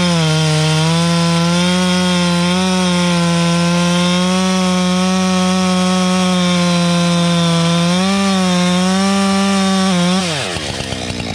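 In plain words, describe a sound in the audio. A chainsaw roars loudly, cutting into a tree trunk.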